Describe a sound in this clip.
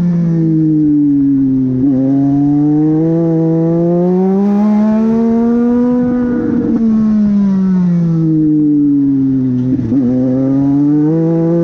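A race car engine roars loudly from inside the cabin, rising and falling in pitch as the car speeds up and slows through corners.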